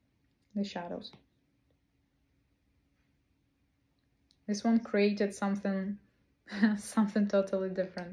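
A young woman speaks close to a microphone with animation, pausing between phrases.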